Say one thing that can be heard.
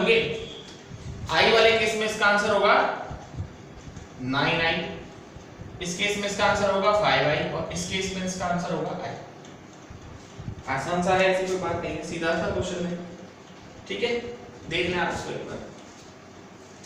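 A young man speaks calmly close by, explaining.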